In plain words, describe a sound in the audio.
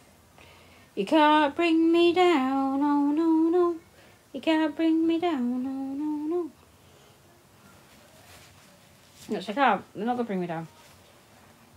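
A middle-aged woman talks close by in a sing-song, animated voice.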